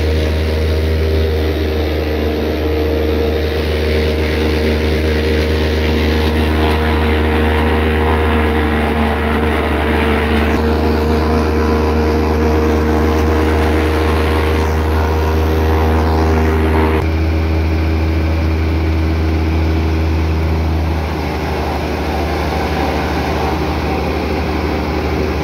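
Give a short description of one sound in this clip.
A tractor engine runs steadily and loudly close by.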